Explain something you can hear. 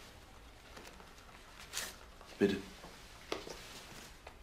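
Paper rustles in a man's hands.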